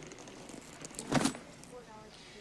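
A bag thumps down on a counter.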